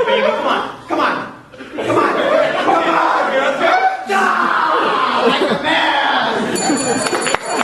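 Young men shout and talk with animation in a large echoing hall.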